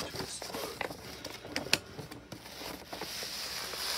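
Paper rustles as a hand smooths it flat.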